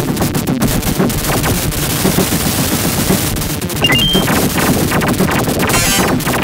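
Arcade game guns fire rapidly.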